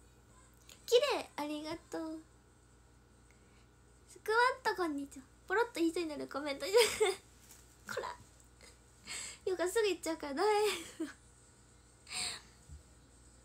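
A young woman talks cheerfully close to a microphone.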